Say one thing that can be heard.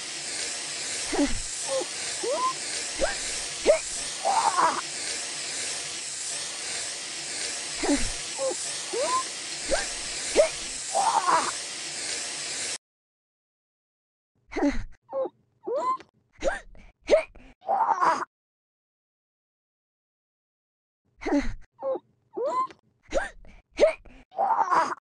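A rubber toy doll squeaks as it is knocked around.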